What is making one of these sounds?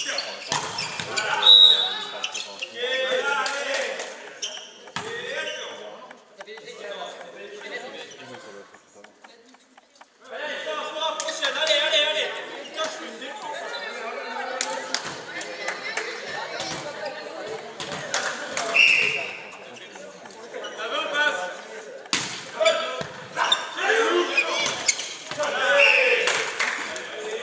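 Players shout and call out to each other in a large echoing hall.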